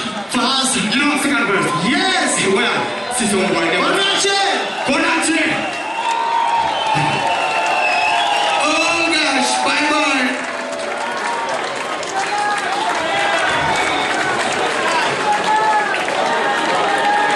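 A band plays loud live music through loudspeakers.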